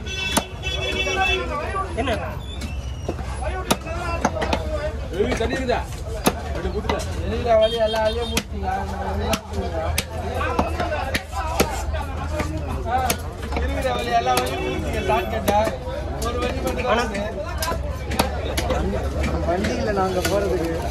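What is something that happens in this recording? A cleaver chops through fish and thuds on a wooden block.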